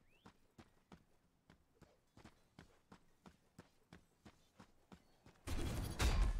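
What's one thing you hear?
Footsteps patter quickly and evenly as a game character runs.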